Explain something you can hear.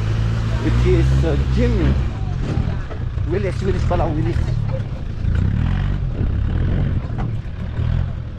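An off-road vehicle's engine rumbles and revs as it climbs over rough dirt.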